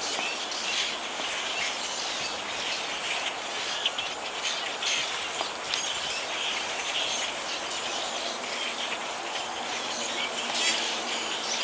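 Many small birds chirp and twitter outdoors.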